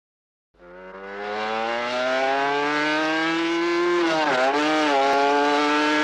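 A motorcycle engine roars close by, rising in pitch, then dips briefly as the rider changes gear.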